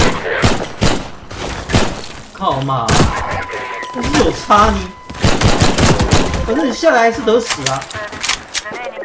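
Pistol shots fire rapidly, one after another.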